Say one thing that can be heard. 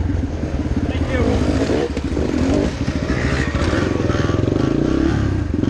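Another dirt bike engine roars past nearby.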